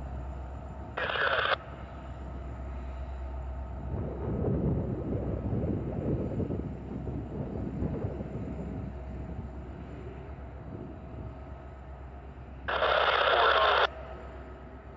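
A train horn blows twice, a short blast and then a long one.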